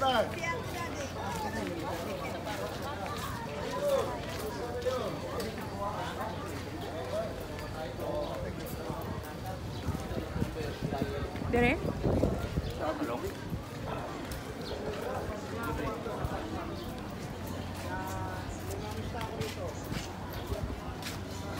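Men talk to each other nearby.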